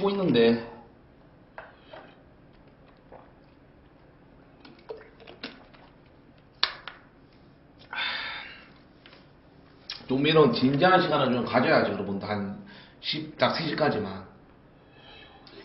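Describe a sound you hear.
A young man gulps a drink.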